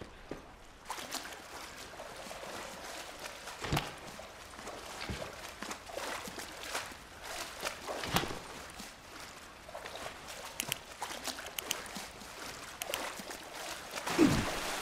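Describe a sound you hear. Footsteps splash through shallow water in an echoing tunnel.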